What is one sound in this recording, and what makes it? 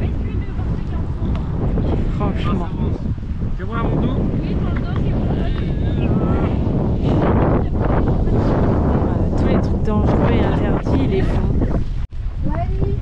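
A boy talks outdoors with animation.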